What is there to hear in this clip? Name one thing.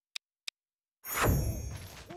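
A soft whoosh sweeps in as a game scene changes.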